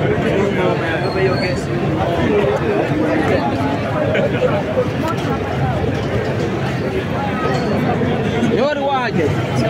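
A crowd of men and women talks and murmurs close by, outdoors.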